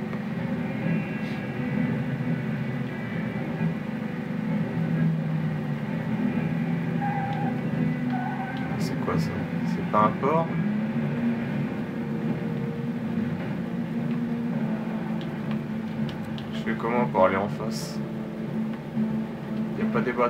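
A truck engine hums steadily as it drives.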